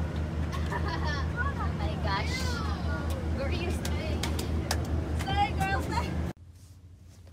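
A bus engine rumbles inside the cabin.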